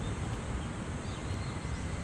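Scissors snip through a stem.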